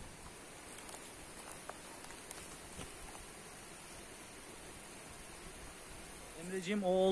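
Glowing coals crackle and pop softly.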